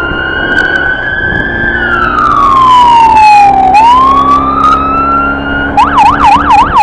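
A siren wails up close.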